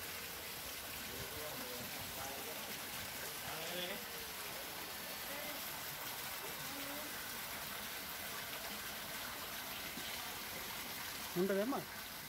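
Water gushes from a hose and splashes into a pool of water.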